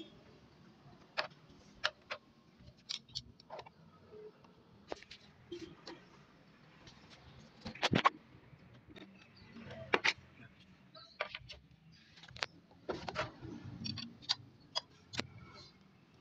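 Plastic body panel clips snap and click as they are pried loose.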